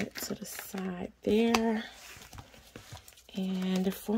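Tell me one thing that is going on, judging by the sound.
A snap button on a wallet clicks open.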